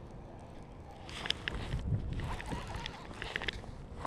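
A fishing reel clicks and whirs as its handle is cranked.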